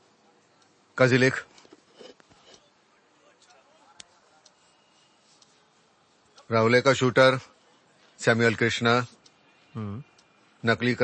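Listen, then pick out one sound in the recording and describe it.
A middle-aged man speaks sternly in short bursts, close by.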